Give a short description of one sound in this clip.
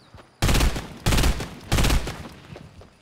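Gunshots fire in sharp single blasts.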